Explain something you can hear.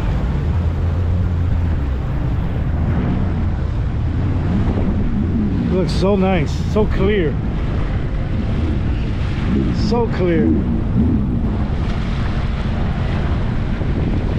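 Water splashes and hisses against a moving hull.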